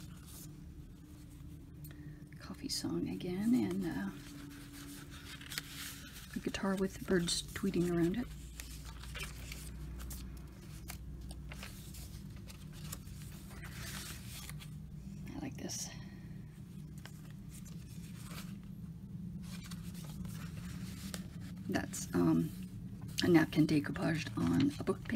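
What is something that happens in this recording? Paper rustles softly as pages and cards are handled and turned.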